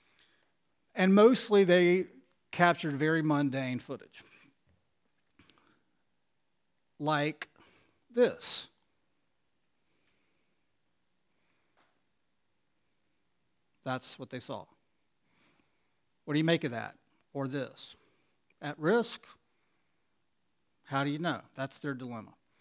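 A middle-aged man speaks calmly into a headset microphone, pausing often.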